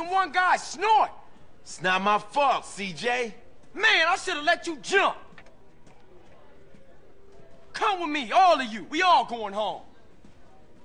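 A man speaks urgently and loudly.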